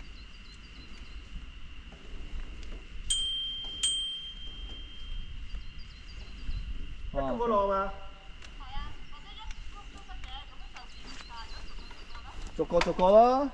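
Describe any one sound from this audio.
Bicycle frames rattle and click over bumps.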